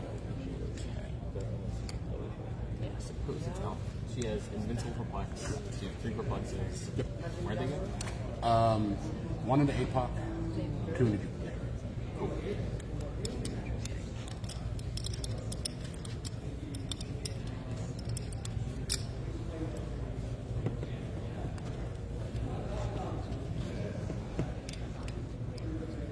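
Game pieces click softly on a table.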